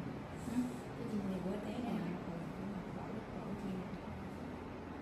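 A young woman speaks softly nearby.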